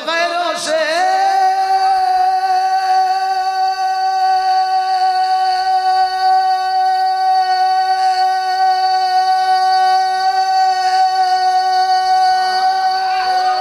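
A man sings out one long, steady held note through a microphone.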